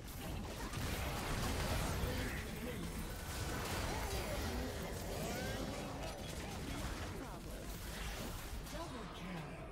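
Magic blasts and hits thud repeatedly.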